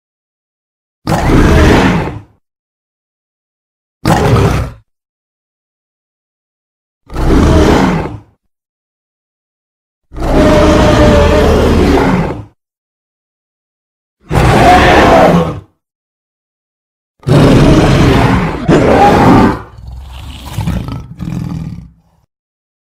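A gorilla roars in loud bursts with pauses between.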